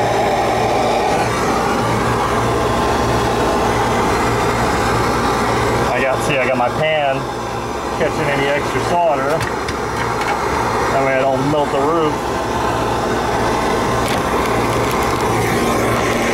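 An outdoor air conditioning unit hums steadily nearby.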